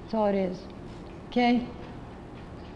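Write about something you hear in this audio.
An elderly woman speaks calmly into a microphone, in short phrases with pauses.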